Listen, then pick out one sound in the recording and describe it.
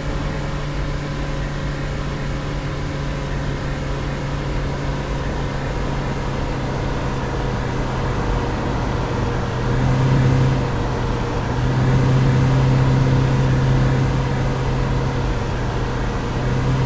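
A truck engine hums steadily from inside the cab.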